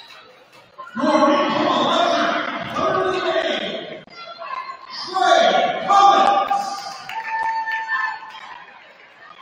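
A crowd of spectators cheers in an echoing gym.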